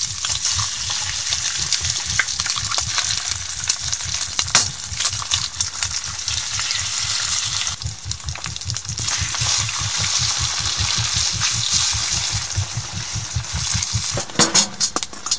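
Eggs and bacon sizzle in a hot pan.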